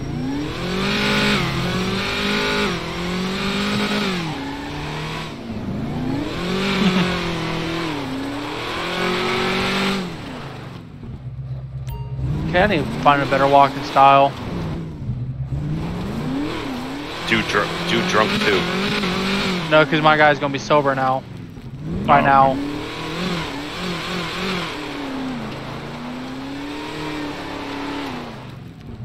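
A powerful car engine revs hard and roars up and down.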